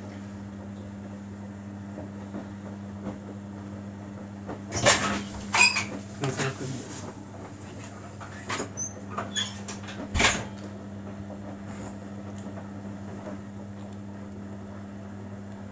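A front-loading washing machine hums as its drum turns.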